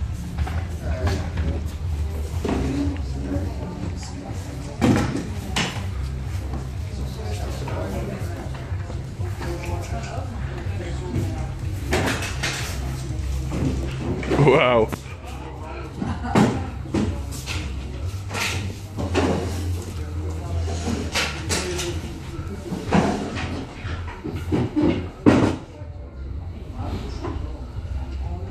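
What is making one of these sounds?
Men and women talk nearby in a group.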